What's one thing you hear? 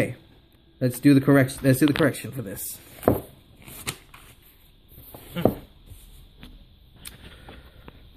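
Paper pages rustle as a book is moved.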